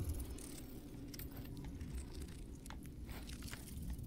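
Footsteps scrape on stone.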